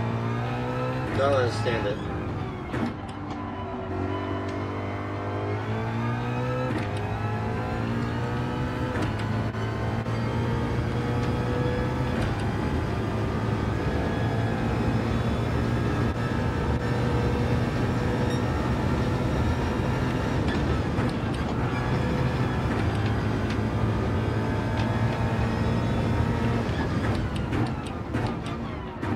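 A race car engine roars steadily, rising in pitch and dropping back as it shifts gears.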